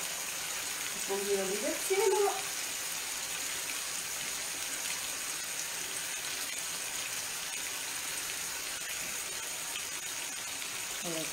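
Food sizzles steadily in frying pans.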